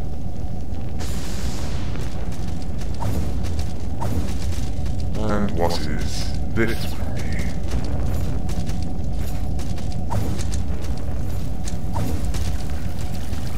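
A magical whooshing burst swirls and fades.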